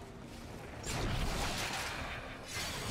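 A blade slashes and strikes.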